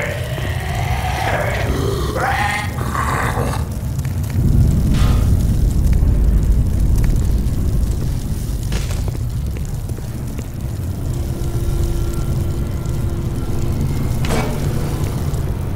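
Fire roars and crackles close by.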